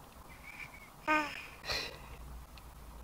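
A baby giggles briefly close by.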